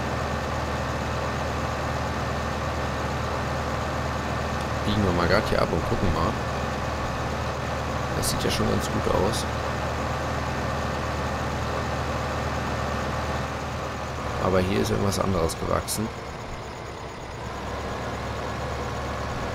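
A tractor engine drones as the tractor drives.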